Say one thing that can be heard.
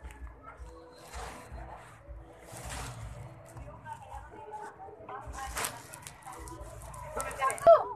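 The microphone rustles as it brushes against a child's face and hair.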